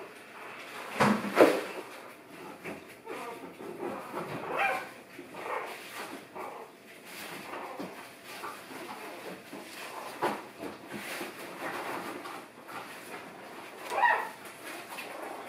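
Small puppies whimper and yip.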